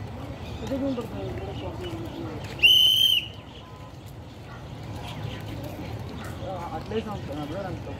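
Birds call and chirp outdoors.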